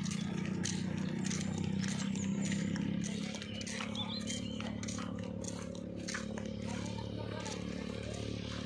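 Footsteps scuff on a concrete road.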